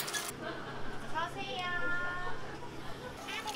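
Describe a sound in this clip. Liquid pours and gurgles into a cup.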